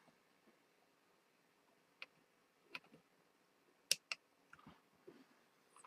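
Cutting pliers snip with small sharp clicks.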